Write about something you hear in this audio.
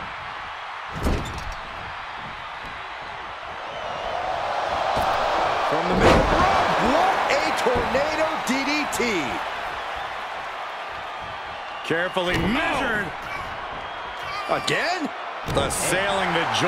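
Bodies slam hard onto a wrestling ring mat.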